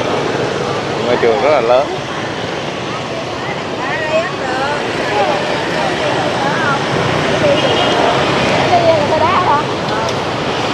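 Men and women chat in passing nearby.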